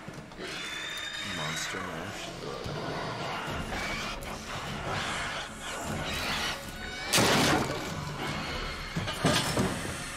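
Creatures shriek and snarl loudly.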